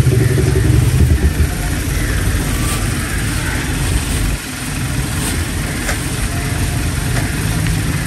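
A cloth sack rustles as it is handled.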